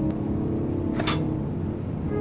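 A plate clinks as it is set in a dish rack.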